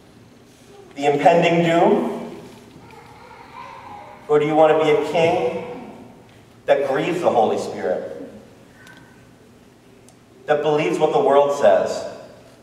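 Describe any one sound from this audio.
A man speaks calmly in short phrases through a microphone, in a room with a slight echo.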